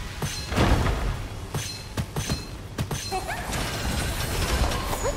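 Explosions burst and crackle.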